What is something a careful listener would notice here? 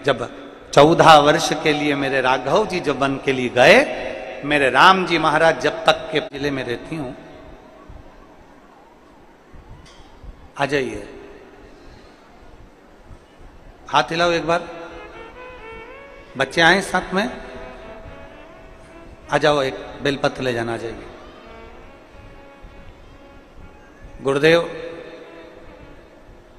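A middle-aged man speaks with animation into a microphone over loudspeakers, echoing in a large space.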